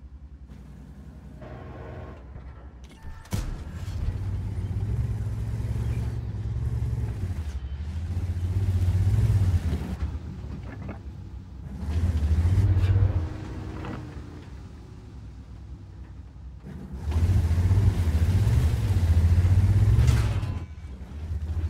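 A tank engine rumbles deeply.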